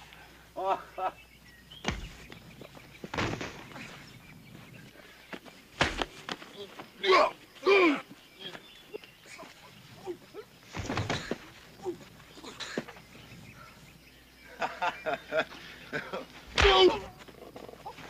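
Men grunt and cry out as they fight.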